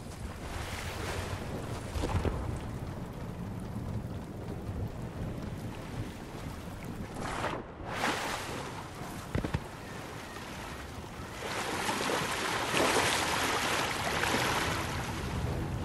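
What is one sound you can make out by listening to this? Footsteps thud on a wooden dock.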